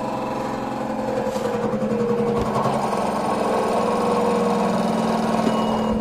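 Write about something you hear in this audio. A washing machine drum spins fast with a rumbling, rattling whir.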